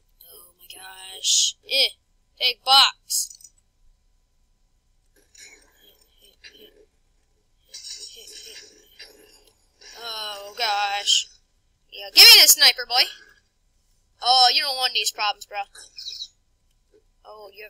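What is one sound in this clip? A boy talks with animation, close to a microphone.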